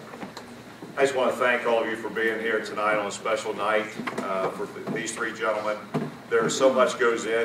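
A man speaks into a microphone over a loudspeaker, with animation, in an echoing hall.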